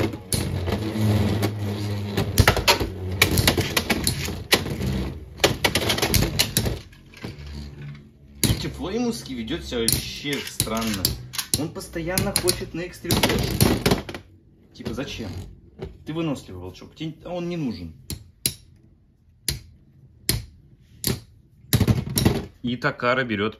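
Metal spinning tops clash and grind against each other in a plastic stadium.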